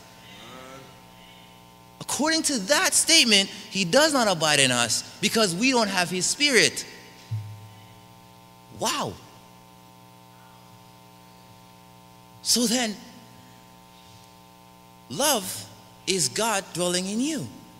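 A young man preaches with animation into a microphone, with long pauses.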